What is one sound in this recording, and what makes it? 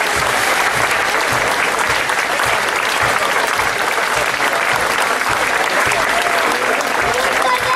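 A military brass band plays a march outdoors.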